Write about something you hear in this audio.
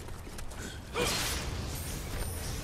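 Blades clash and slash with sharp metallic strikes.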